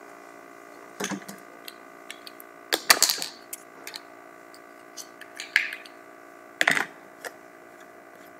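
A man speaks nearby in short bursts.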